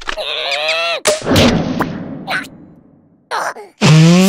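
A cartoon creature lets out a long, puffing fart.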